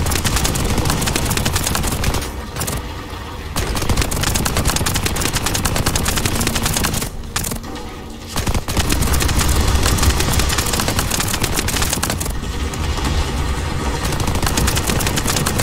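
Explosions boom with deep rumbling.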